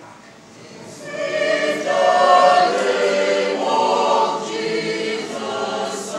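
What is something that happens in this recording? A group of young people sing together in a choir.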